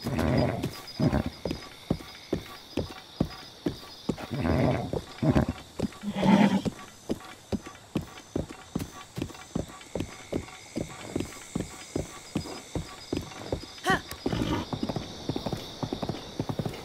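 Hooves clop steadily on the ground as a horse runs.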